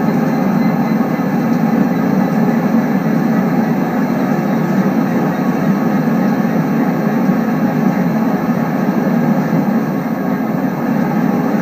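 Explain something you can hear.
A train engine rumbles steadily as the train rolls along the rails.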